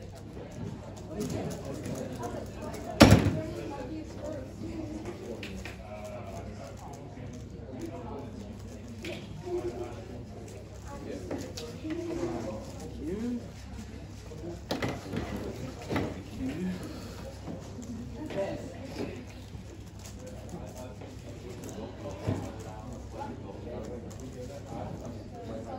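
Plastic puzzle cubes click and rattle as they are turned quickly.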